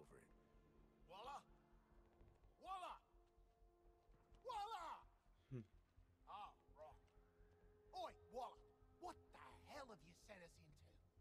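A man speaks into a phone, calling out and then talking irritably.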